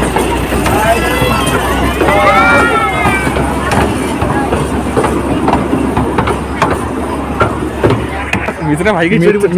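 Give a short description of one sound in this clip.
A small ride train's engine rumbles steadily as it passes.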